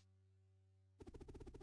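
Electronic tones pulse rapidly.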